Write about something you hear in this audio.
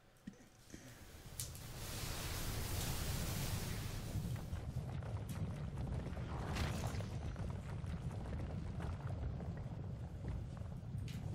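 A huge creature lets out a deep, rumbling roar.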